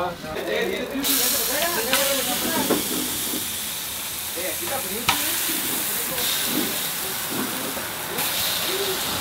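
Dough sizzles softly on a hot griddle.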